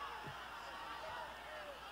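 A stadium crowd murmurs faintly in the distance.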